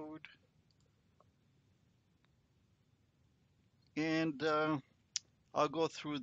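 A middle-aged man speaks calmly into a close microphone.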